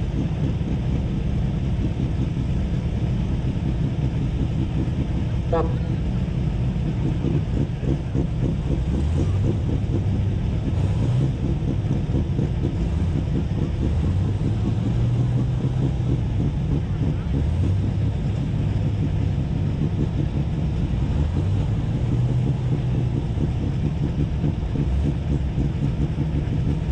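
Tractor engines rumble steadily in the distance.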